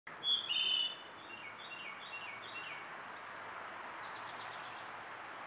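A thrush sings a clear, fluting song with trills close by.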